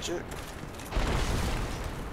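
A sword swings and whooshes through the air.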